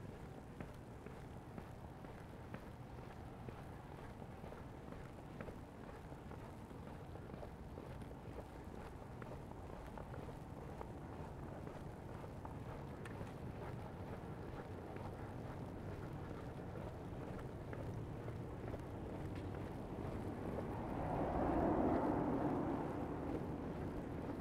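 Footsteps crunch through fresh snow.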